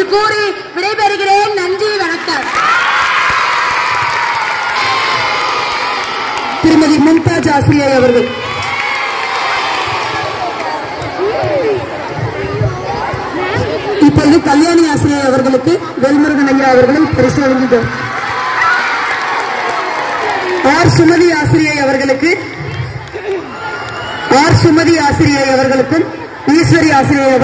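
A woman speaks steadily through a loudspeaker outdoors, her voice echoing.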